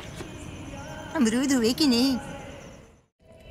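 An older woman talks on a phone.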